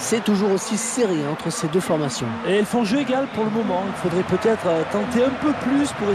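A large crowd cheers and chants steadily.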